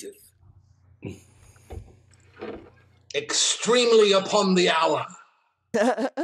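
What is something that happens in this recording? An older man speaks animatedly over an online call.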